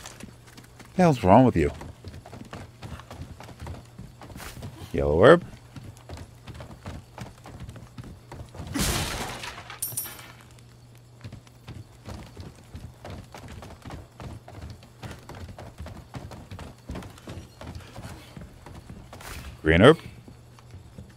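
Footsteps thud on creaking wooden planks.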